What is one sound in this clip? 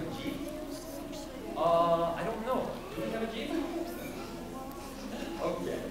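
A man speaks loudly to a group.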